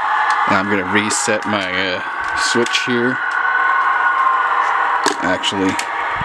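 Buttons click on a handheld train controller.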